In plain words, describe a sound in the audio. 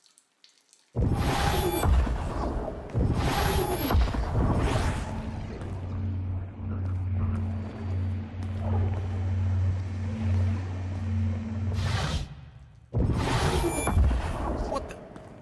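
A portal opens with a rushing whoosh.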